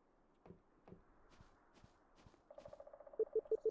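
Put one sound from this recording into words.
Soft footsteps tap across a wooden floor.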